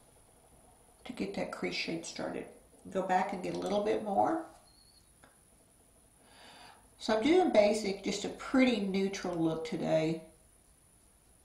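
A middle-aged woman speaks calmly and close to the microphone.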